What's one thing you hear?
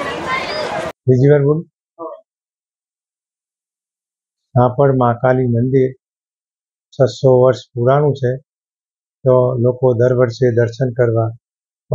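An elderly man speaks calmly into a close microphone, with pauses.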